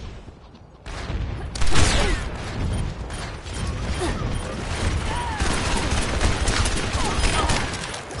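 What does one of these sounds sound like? A revolver fires several loud shots.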